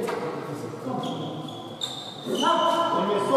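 Sneakers squeak sharply on a hard floor.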